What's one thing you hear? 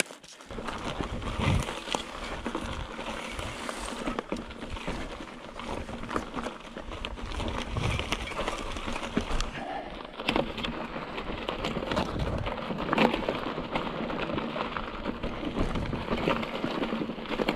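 A mountain bike's frame and chain clatter over bumps.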